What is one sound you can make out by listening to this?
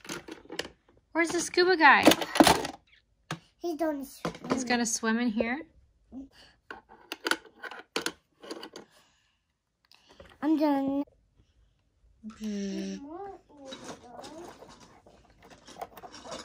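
Plastic toy pieces clack and rattle.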